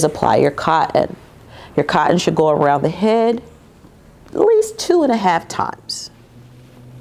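A young woman speaks clearly and with animation, close to a microphone.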